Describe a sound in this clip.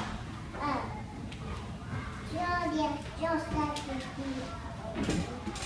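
A young girl speaks through a microphone in a high, lively voice.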